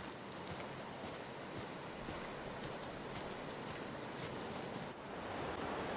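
Wind rustles through tall grass outdoors.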